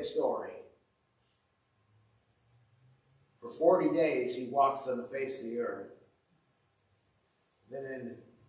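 An elderly man speaks calmly through a microphone, with pauses between phrases.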